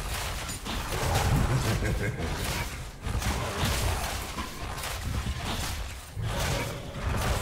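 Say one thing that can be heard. Game spell effects and attacks clash and crackle rapidly.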